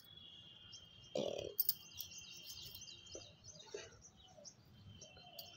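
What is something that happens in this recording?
A hand presses soil into a pot with soft crumbly scrapes.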